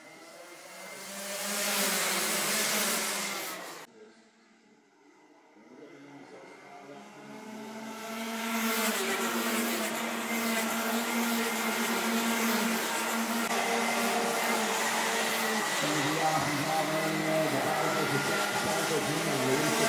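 Kart engines buzz loudly as karts race past.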